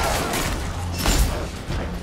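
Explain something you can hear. Flames roar in a sudden blast.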